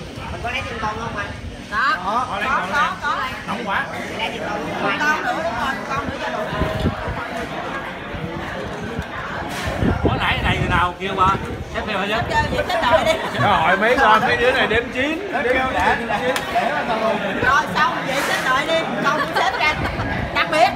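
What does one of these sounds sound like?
Several young men and women talk and laugh together close by, over one another.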